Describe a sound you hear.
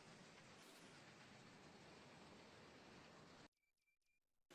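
A combine harvester engine rumbles steadily.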